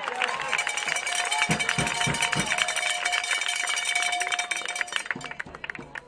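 Spectators cheer and shout from the sidelines outdoors.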